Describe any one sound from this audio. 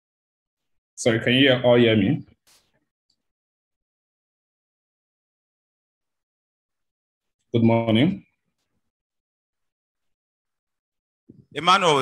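A young man speaks calmly in short phrases into a microphone, close by.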